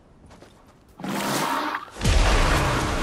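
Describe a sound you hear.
A launch pad fires with a loud whoosh.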